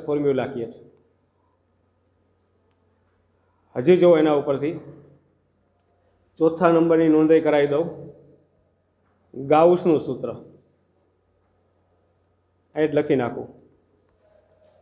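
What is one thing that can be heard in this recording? A middle-aged man speaks calmly into a close microphone, in short bursts with pauses.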